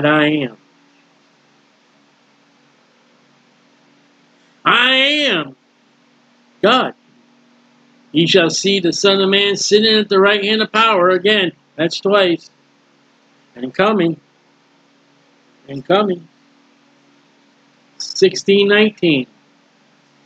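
A middle-aged man speaks calmly into a computer microphone, with pauses.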